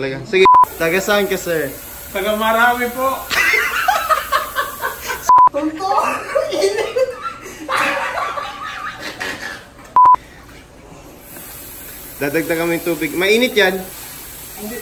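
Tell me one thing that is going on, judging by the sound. A man talks and laughs with animation close by.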